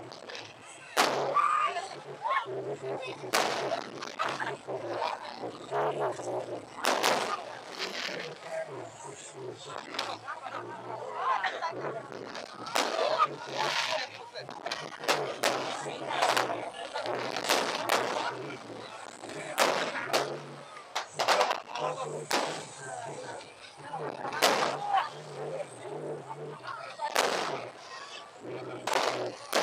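Fireworks burst with loud booming bangs.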